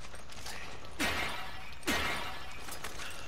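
Clay pots shatter with a sharp crash.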